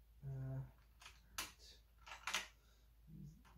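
A screwdriver clicks and taps against metal.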